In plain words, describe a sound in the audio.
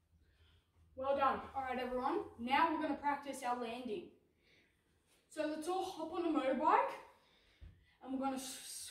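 A boy speaks with animation.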